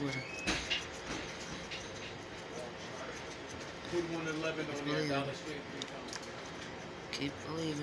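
A coin scratches across a scratch-off card.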